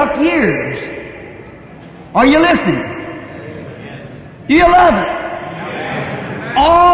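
A man preaches with animation through a microphone, his voice echoing in a large hall.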